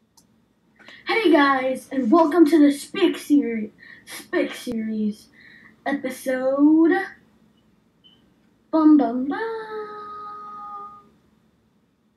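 A young boy talks animatedly, close to the microphone.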